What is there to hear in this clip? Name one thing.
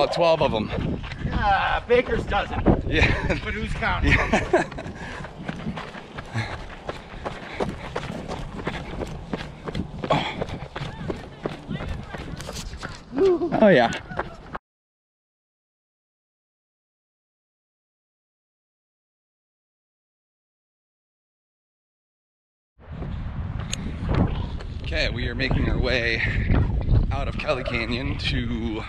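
A man talks cheerfully, close by and slightly breathless.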